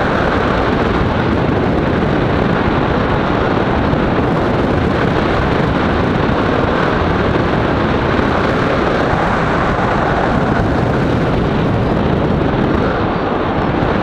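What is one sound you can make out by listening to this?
Strong wind rushes and buffets steadily past, outdoors high in the air.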